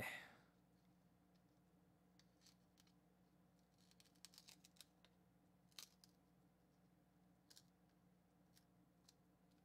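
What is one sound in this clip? Trading cards rustle and click softly in a person's hands.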